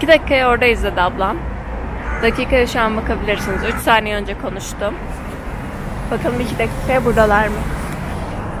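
A young woman talks animatedly close to a microphone.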